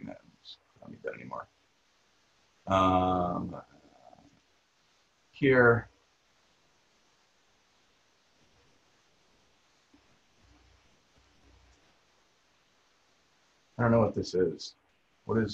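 A man talks calmly into a microphone, heard as if on an online call, with long pauses.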